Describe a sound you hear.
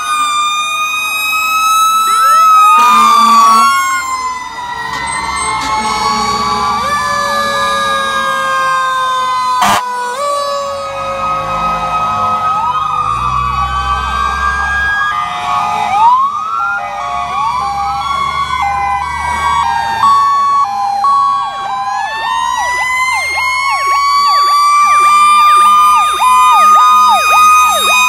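Heavy truck engines rumble as fire engines roll slowly past.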